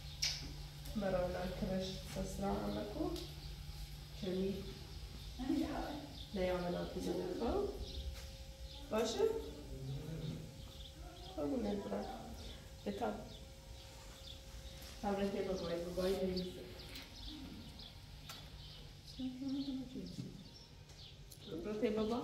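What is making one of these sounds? A young woman speaks calmly and gently close by.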